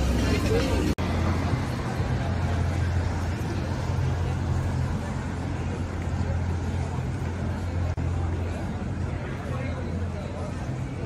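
A car engine hums as it drives slowly past.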